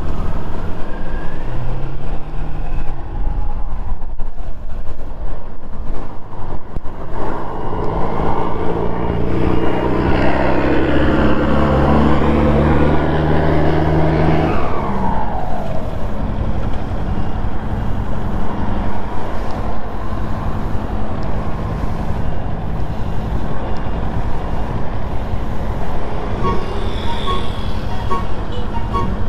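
A motorcycle engine hums and revs.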